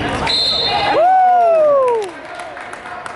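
A referee's whistle blows loudly and briefly.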